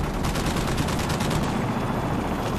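A rifle fires rapidly in a sustained burst.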